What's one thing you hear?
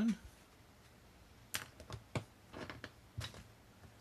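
A paintbrush is set down on a table with a light tap.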